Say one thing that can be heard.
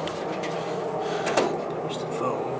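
A key clicks in a metal lock.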